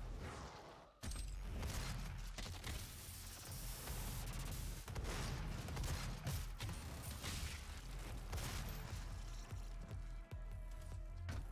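Gunshots blast in quick bursts.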